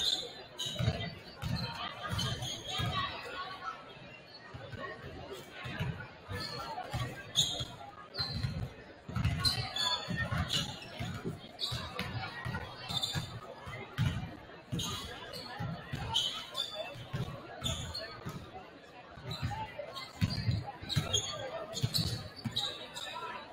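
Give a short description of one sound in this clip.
A crowd murmurs in the stands.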